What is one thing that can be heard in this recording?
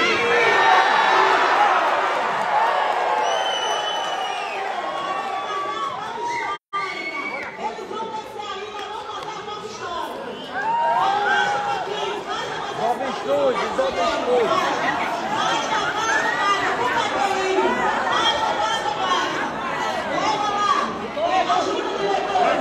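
A large crowd of men and women shouts and chants loudly in a big echoing hall.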